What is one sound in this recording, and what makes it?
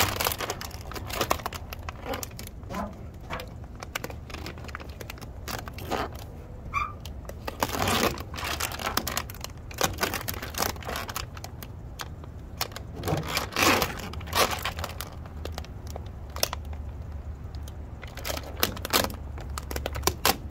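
Fingers rub and squeak against a smooth surface.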